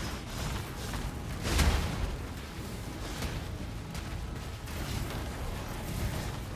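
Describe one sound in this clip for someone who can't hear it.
Magic spells crackle and explode in rapid bursts.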